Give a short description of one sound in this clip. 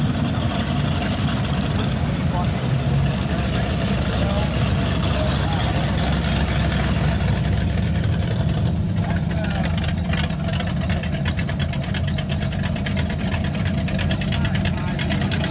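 Car tyres roll slowly over pavement.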